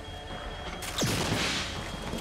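A crossbow fires a bolt with a sharp snap.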